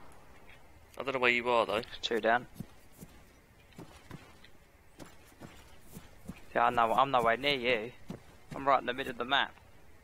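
Footsteps crunch softly on dirt and grass.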